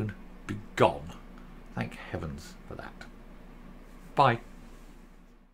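A middle-aged man speaks with animation close to a microphone.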